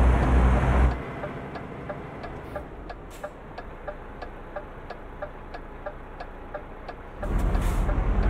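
A turn signal ticks steadily.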